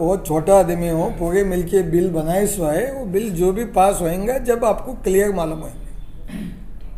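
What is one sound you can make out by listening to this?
A middle-aged man speaks calmly and steadily into a nearby microphone.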